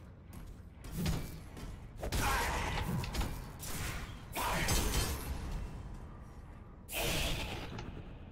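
Gunfire and explosions crash in a game.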